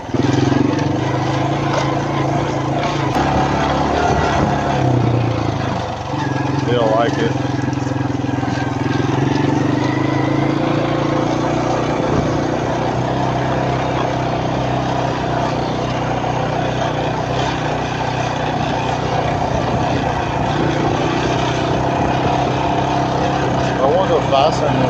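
An engine hums steadily close by.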